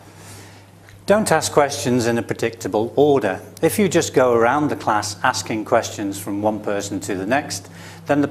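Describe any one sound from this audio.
A man speaks to the listener calmly through a clip-on microphone.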